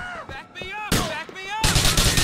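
A pistol fires several quick shots.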